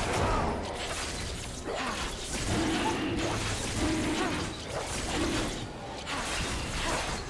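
Game sound effects of spells and attacks crackle and whoosh.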